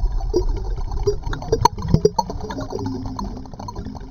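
Bubbles rush and gurgle underwater.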